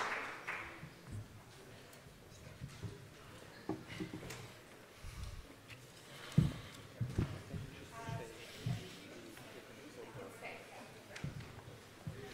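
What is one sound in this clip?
People murmur and chat in a large room.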